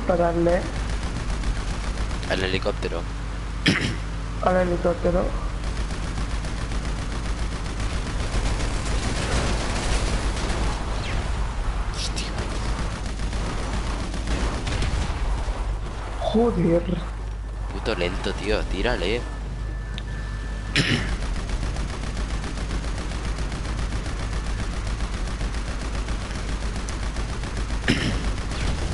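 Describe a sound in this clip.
A buggy engine roars steadily as it drives over a dirt road.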